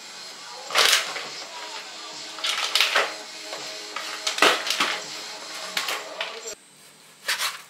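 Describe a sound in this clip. A plastic toy clatters across a hard floor.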